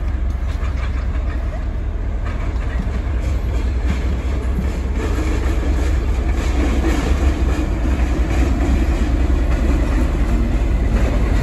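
A diesel locomotive engine rumbles steadily as it approaches, growing louder.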